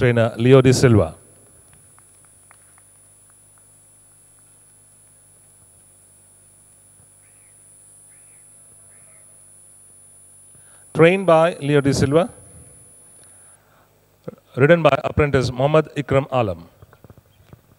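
A man speaks loudly through a loudspeaker.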